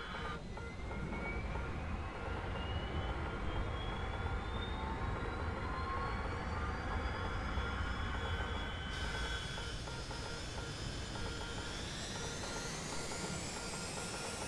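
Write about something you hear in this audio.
A jet engine whines and steadily rises in pitch as it spools up.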